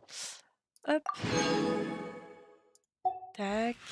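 A bright reward jingle rings out.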